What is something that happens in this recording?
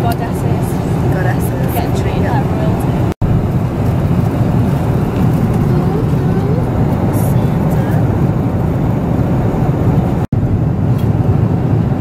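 Aircraft engines drone steadily with a low, constant roar.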